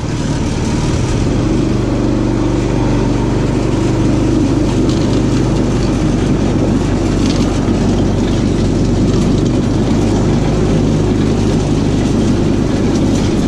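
A small engine revs and drones as a go-kart drives.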